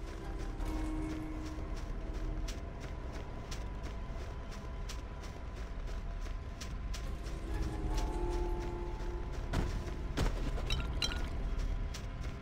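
Footsteps patter quickly and evenly over dry, sandy ground.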